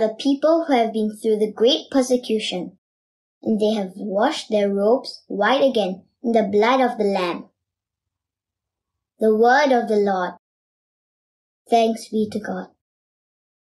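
A young girl reads aloud calmly and clearly, close to a microphone.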